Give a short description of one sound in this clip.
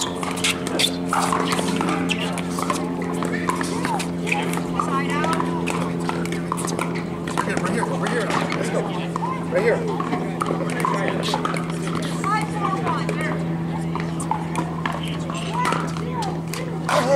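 Paddles pop sharply against a plastic ball outdoors.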